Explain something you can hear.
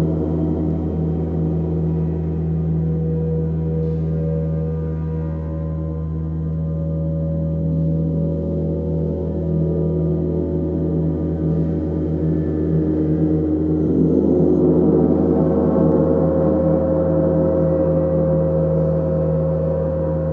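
A large gong hums and shimmers in long, swelling waves that grow louder toward the end.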